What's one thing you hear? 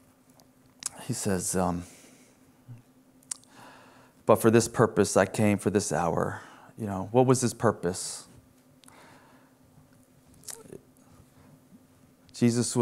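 A middle-aged man speaks slowly and calmly through a microphone, with long pauses.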